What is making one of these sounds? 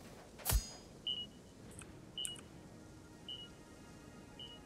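Short electronic beeps chime.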